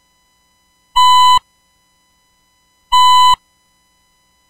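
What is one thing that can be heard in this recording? A game buzzer beeps sharply, a few times.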